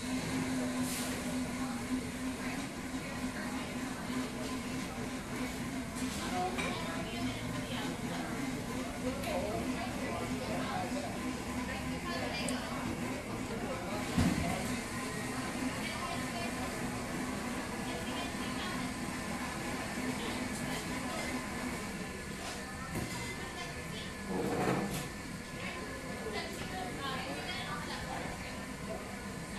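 A crowd of people chatter softly in a room.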